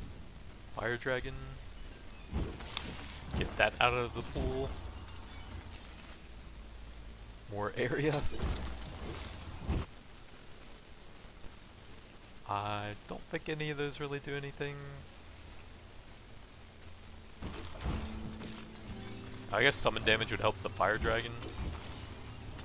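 Bright magical chimes ring out in short bursts.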